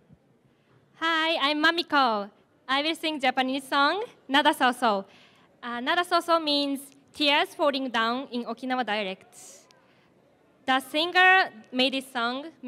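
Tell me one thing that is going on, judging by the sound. A young woman sings into a microphone over loudspeakers in a large hall.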